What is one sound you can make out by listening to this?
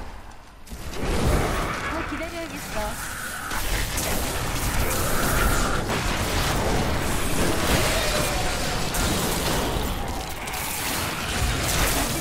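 Fiery blasts boom and rumble over and over.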